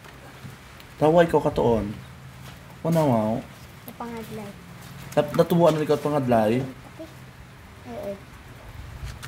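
A young boy speaks close by in short bursts.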